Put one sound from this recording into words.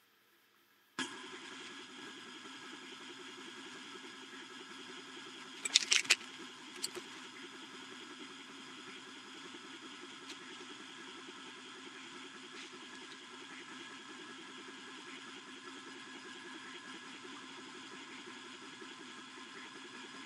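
A laser engraver's fan and motors hum steadily.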